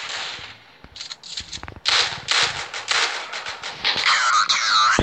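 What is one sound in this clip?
A shotgun fires several loud blasts in quick succession.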